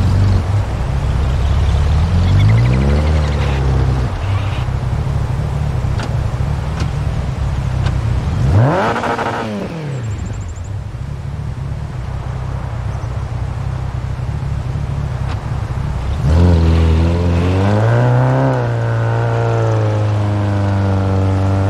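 A rally car engine revs hard, rising and falling in pitch.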